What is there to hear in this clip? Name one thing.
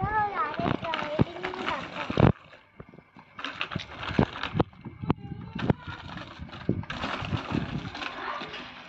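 Tyres of a small bicycle roll over pavement.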